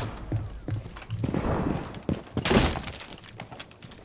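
Gunshots crack rapidly and splinter a wooden wall.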